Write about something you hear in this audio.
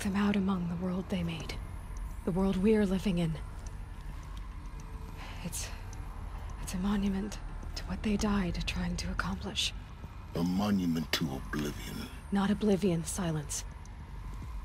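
A young woman speaks calmly and thoughtfully.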